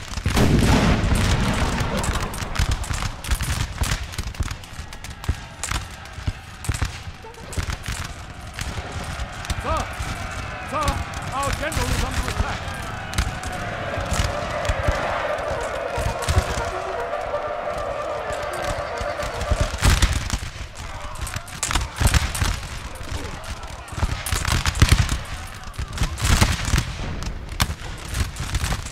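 Musket volleys crack and boom across open ground.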